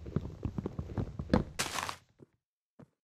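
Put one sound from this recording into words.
Gravel crunches as a block is dug away.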